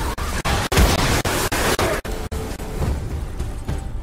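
An axe strikes an enemy with a heavy thud.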